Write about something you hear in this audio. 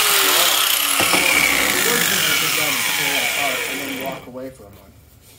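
An angle grinder spins down and fades.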